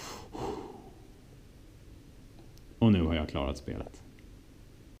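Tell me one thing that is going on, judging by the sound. Small plastic joystick and buttons click softly under a finger.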